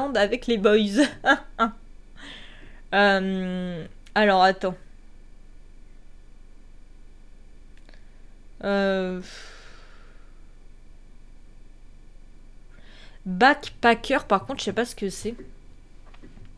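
A young woman speaks with animation close to a microphone, in short bursts with pauses.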